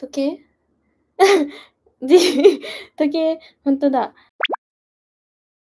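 A young woman talks excitedly close to a microphone.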